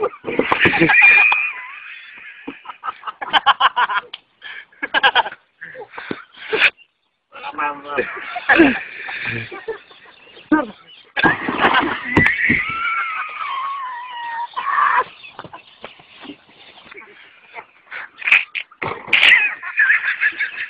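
Men shout and laugh loudly outdoors.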